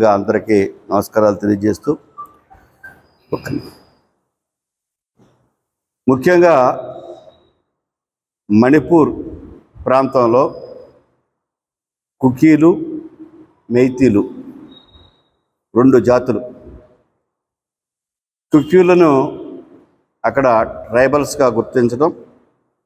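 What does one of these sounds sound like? An elderly man speaks calmly into a clip-on microphone, pausing between phrases.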